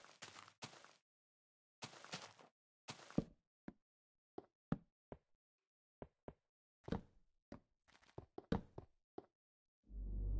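Earth and stone crunch in short bursts as blocks are dug away.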